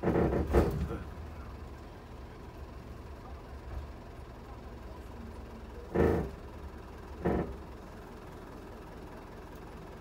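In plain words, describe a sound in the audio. A bus slows and comes to a stop.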